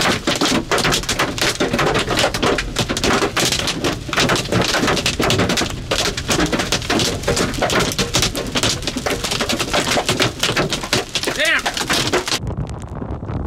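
Hail pounds loudly on a car windshield.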